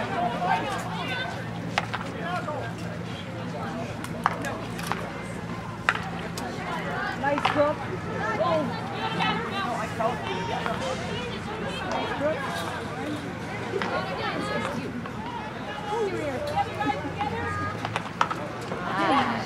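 Young women and spectators shout and call out outdoors.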